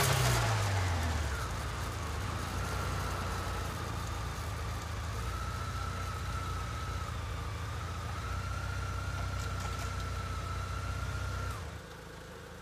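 A spinning motorcycle wheel and chain whir with a steady whine.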